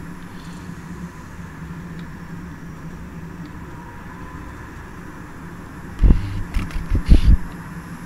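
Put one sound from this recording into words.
A diesel locomotive engine hums steadily from inside the cab.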